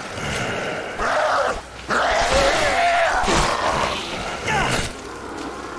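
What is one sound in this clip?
A heavy blow strikes a creature with a wet, squelching thud.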